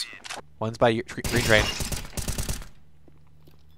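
Rapid rifle gunfire rings out in bursts.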